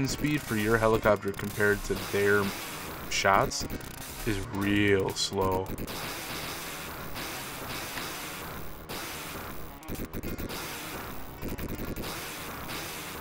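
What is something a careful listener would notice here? Electronic music plays from an arcade game.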